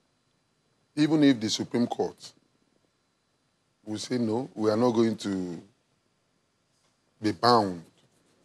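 A middle-aged man speaks calmly into a microphone in short phrases with pauses.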